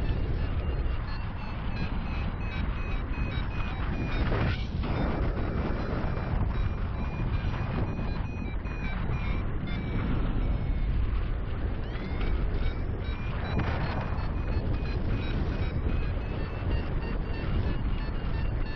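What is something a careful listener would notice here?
Strong wind rushes and buffets loudly past, high in the open air.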